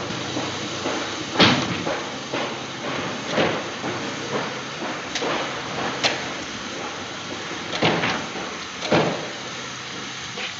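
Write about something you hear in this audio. Knocks and thuds sound inside a moving train carriage.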